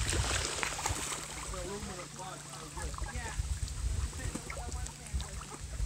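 Ducks splash and paddle in shallow water.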